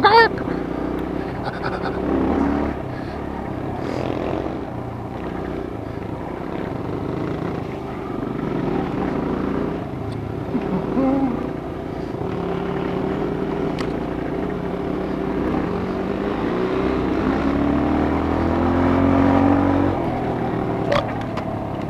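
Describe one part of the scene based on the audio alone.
A dirt bike engine drones up close, revving up and down.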